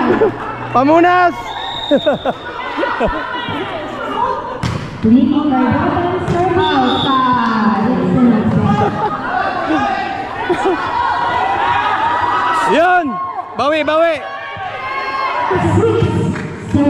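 Children shout and call out across a large echoing court.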